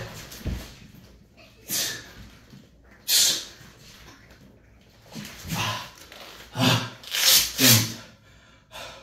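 A man breathes hard and grunts during exercise.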